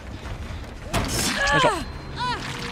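A blade slashes and strikes a body with a wet hit.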